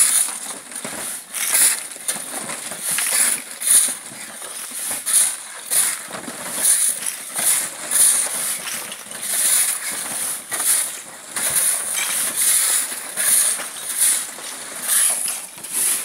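Shovels scrape and rubble clatters as men unload stones.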